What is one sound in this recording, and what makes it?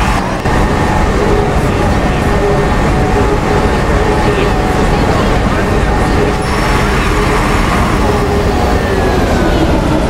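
A bus engine hums and drones steadily.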